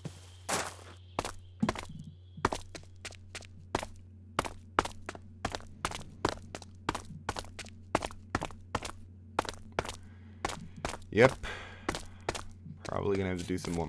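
Footsteps tread steadily on stone.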